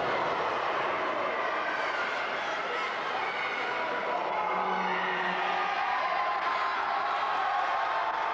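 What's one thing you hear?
A crowd cheers and shouts throughout a large echoing hall.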